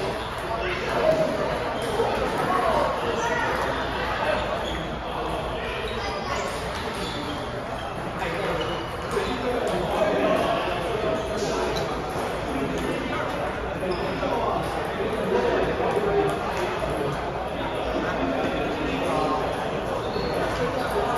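Several men talk casually in a large echoing hall.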